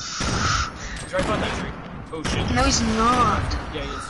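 A sniper rifle fires a loud shot.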